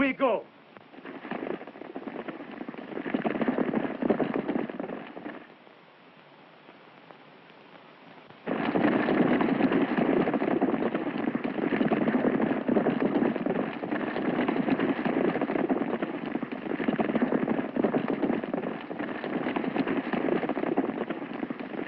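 Horses gallop past with pounding hooves.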